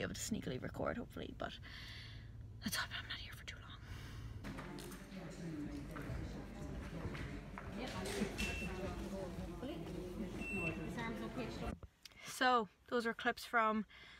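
A young woman speaks close by, calmly.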